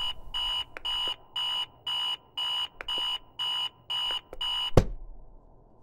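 An alarm clock beeps in rapid, evenly spaced bursts.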